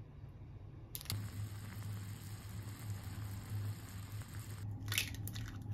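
Noodles bubble and boil in a pot.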